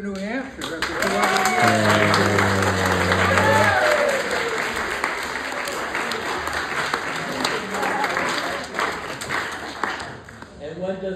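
A crowd of people chatters loudly around.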